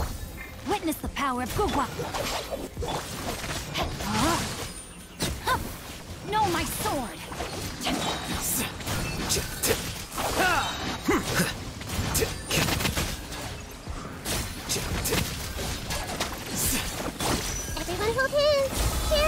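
Magical energy blasts crackle, zap and burst rapidly.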